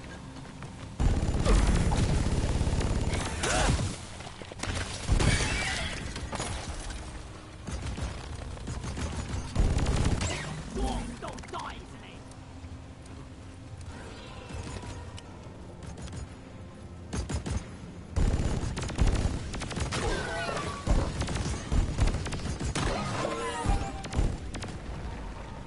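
Energy guns fire in rapid bursts with crackling blasts.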